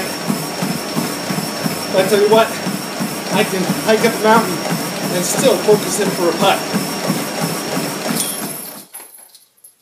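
A treadmill whirs steadily.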